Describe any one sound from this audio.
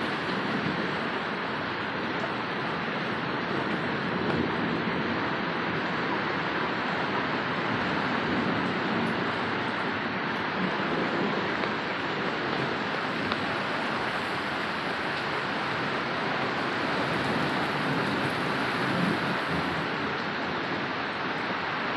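Heavy rain pours steadily onto leaves and the ground outdoors.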